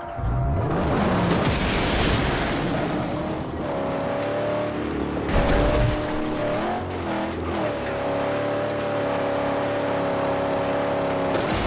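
Tyres crunch and hiss over dry sand and gravel.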